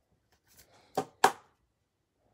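Plastic card cases click and tap against each other.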